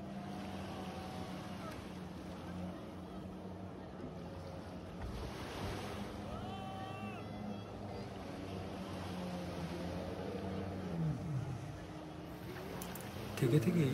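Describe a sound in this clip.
Motorboat engines hum steadily out on the water.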